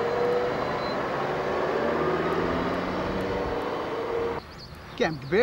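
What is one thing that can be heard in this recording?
A car engine hums as the car drives slowly along.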